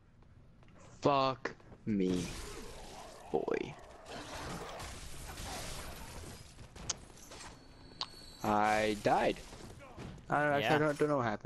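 Weapons clash and slash in a fight.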